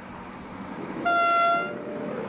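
A diesel train sounds its horn.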